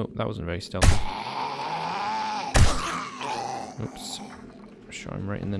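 A zombie growls and groans.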